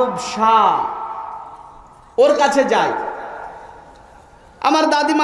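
A man preaches loudly and with fervour through a microphone and loudspeakers, echoing outdoors.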